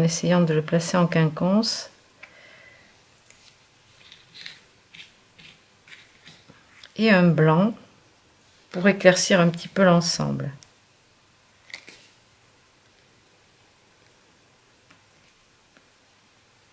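Paper rustles softly as small pieces are handled.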